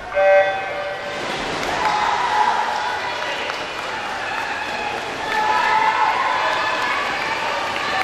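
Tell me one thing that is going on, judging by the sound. Swimmers splash through the water in a large echoing hall.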